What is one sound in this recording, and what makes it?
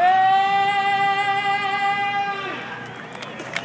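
A singer holds a long, high final note through loudspeakers, echoing outdoors.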